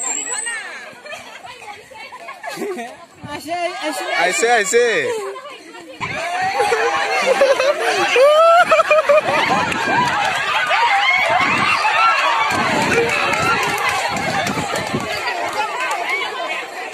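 A large crowd of children shouts and cheers outdoors.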